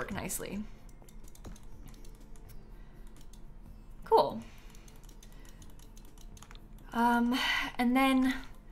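A young woman talks and exclaims with animation close to a microphone.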